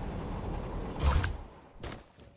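A heavy thump lands on the ground.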